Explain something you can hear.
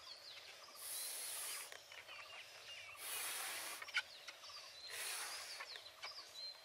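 A boy blows hard into a balloon in short breathy bursts.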